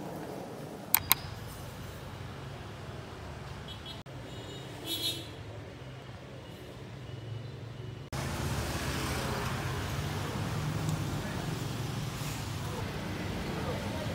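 Motorbikes and cars pass by on a busy street.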